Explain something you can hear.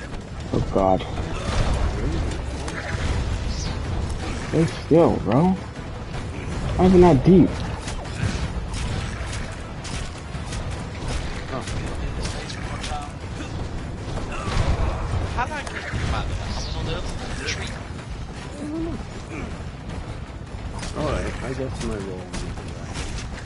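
A large winged creature shrieks and roars.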